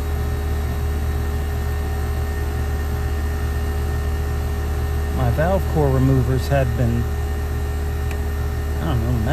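A metal hose fitting scrapes softly as it is twisted by hand.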